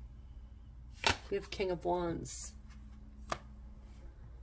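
Playing cards slide and tap softly on a cloth-covered table.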